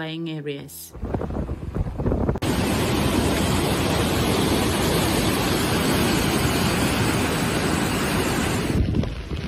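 Muddy floodwater roars and rushes over a weir.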